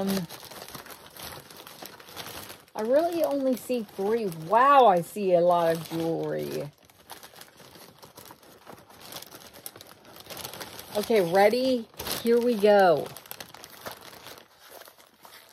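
A plastic mailer bag rustles and crinkles close by.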